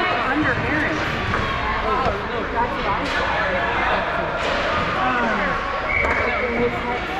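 Ice skates scrape and swish on the ice.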